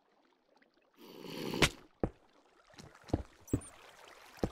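Stone blocks crunch and thud as they are dug out.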